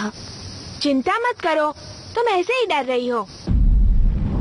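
A woman answers calmly.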